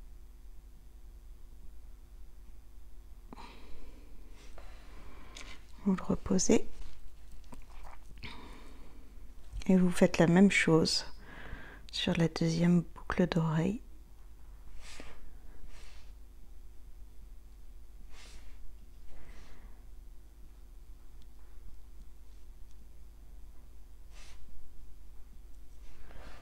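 Small beads clink softly as fingers handle a beaded earring.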